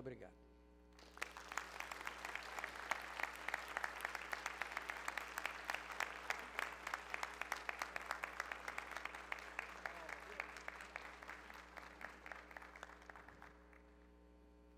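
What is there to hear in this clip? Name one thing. A large audience applauds in a big echoing hall.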